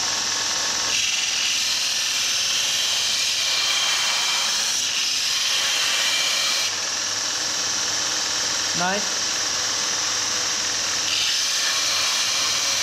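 A metal blade hisses and rasps against a grinding belt.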